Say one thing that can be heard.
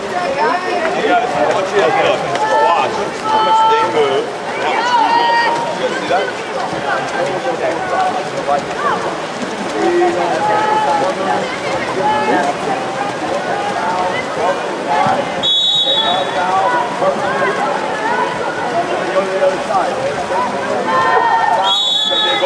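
A man shouts instructions nearby.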